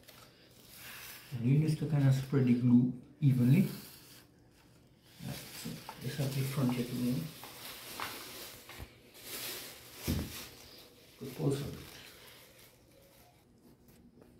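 A plastic sheet rustles and crinkles as it is handled.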